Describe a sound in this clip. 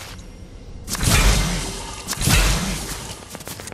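A game character lands on the ground with a thud.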